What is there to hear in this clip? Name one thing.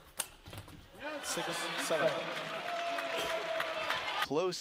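A crowd cheers and applauds loudly in a large hall.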